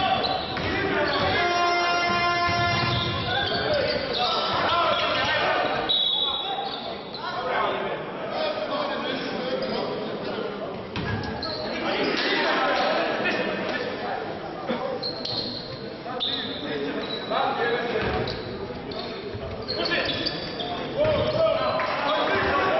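A crowd murmurs and calls out in an echoing hall.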